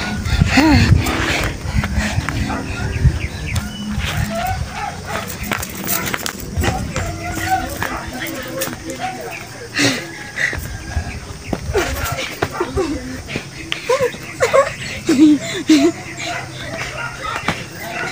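Bare hands slap against skin.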